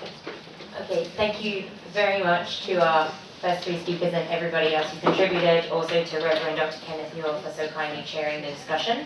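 A woman speaks into a microphone over a loudspeaker, in a room with some echo.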